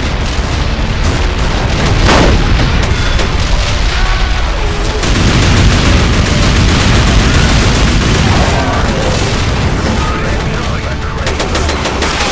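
A heavy walking machine fires guns in rapid bursts.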